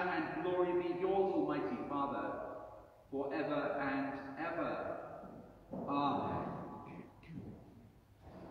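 A man chants in a sung voice through a microphone in a large echoing hall.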